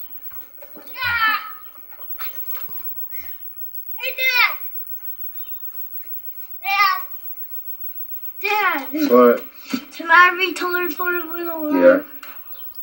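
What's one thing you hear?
A young boy shouts and talks with animation close by.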